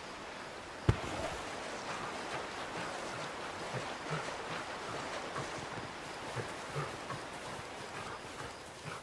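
Water splashes as a creature wades through a stream.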